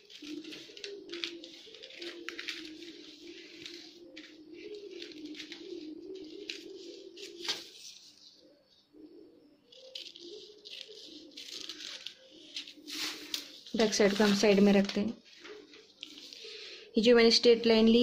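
Scissors snip and rustle through paper.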